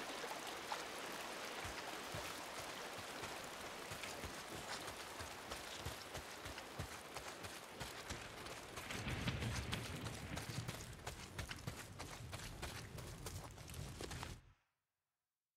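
Footsteps run quickly through rustling undergrowth.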